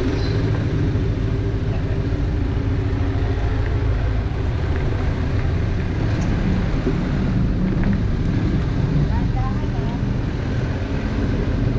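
A van engine rumbles steadily nearby.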